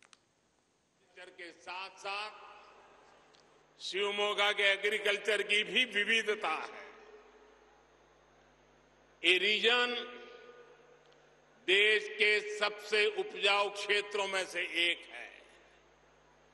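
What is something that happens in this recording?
An elderly man speaks forcefully into a microphone, his voice carried over loudspeakers with a slight echo.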